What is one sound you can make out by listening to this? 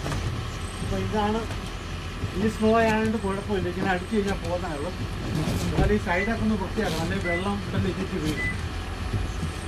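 A middle-aged man talks calmly nearby.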